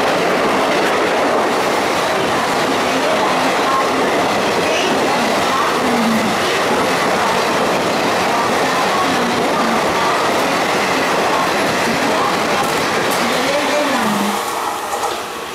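A passenger train rolls past loudly, wheels clattering on the rails.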